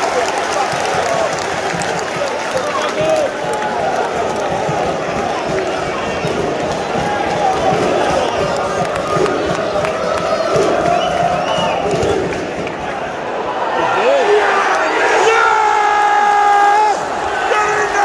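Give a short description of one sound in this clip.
A large stadium crowd chants and sings loudly throughout.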